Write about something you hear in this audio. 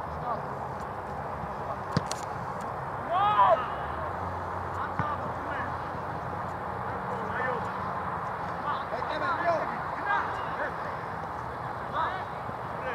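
Young men shout and call to each other across an open field.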